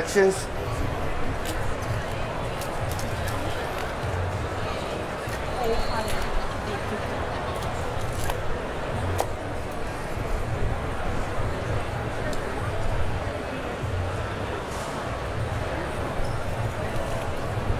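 A knife slices through raw fish.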